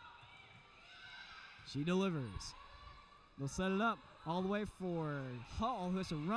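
A volleyball is struck with a dull slap in a large echoing gym.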